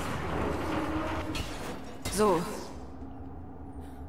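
A heavy metal crank grinds as it is turned.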